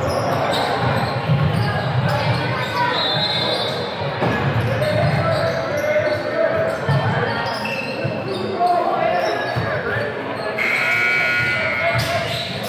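A crowd of young people chatters in a large echoing gym.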